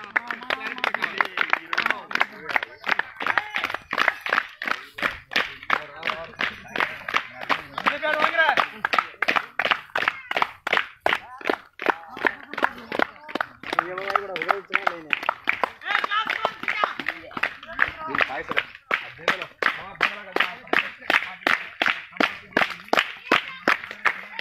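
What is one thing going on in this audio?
Men chant loudly together nearby.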